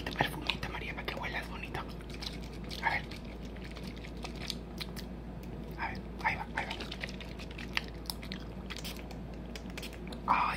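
A plastic bottle crinkles and taps in a hand.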